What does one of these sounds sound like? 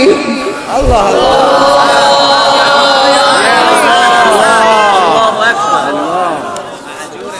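A man chants in a long, melodic voice into a microphone, heard through a loudspeaker with echo.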